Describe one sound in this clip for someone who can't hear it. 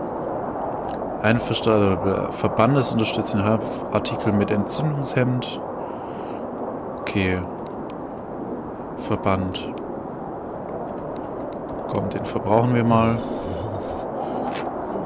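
Strong wind blows steadily in a snowstorm.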